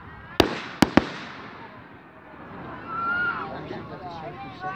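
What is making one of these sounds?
Firework sparks crackle and fizz.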